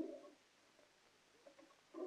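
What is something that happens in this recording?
A cabinet door clicks open.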